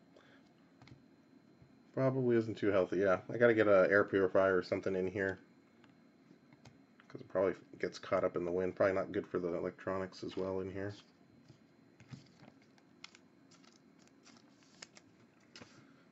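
Trading cards slide and flick against each other in the hands.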